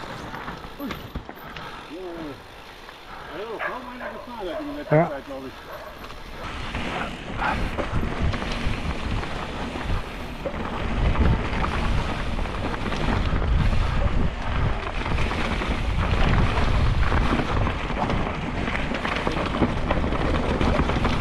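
A bicycle rattles over bumps on a rough trail.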